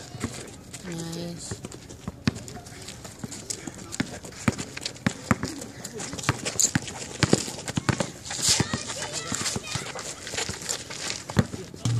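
A basketball bounces repeatedly on an outdoor court.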